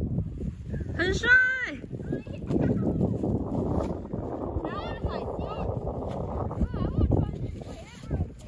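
A young child shouts with excitement outdoors.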